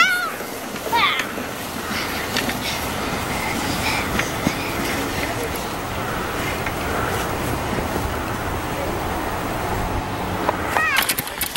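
A plastic sled scrapes and hisses across icy snow.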